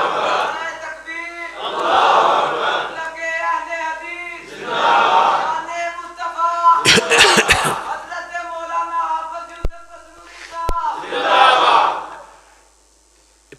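A man chants in a melodic voice through a microphone and loudspeakers.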